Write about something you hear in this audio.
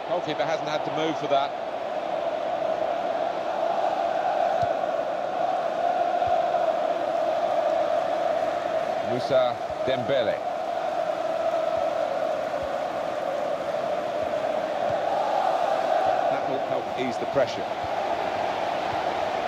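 A stadium crowd roars steadily throughout.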